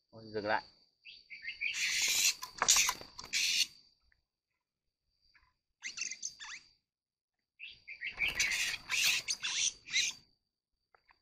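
An oriental magpie-robin beats its wings in a burst of flapping.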